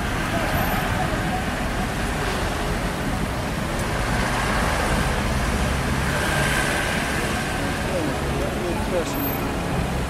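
Car engines idle and hum in slow traffic.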